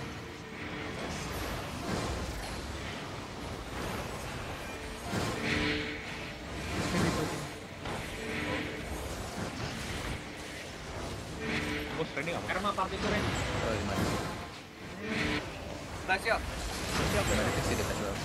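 Magic spells burst and crackle in a busy fantasy battle.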